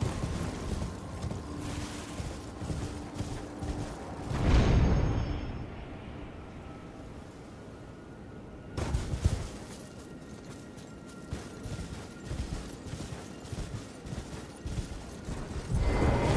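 Quick footsteps patter through grass.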